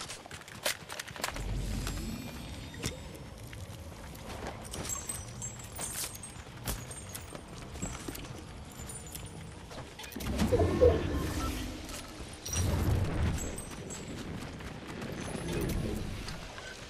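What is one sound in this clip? Footsteps run through grass and over dirt.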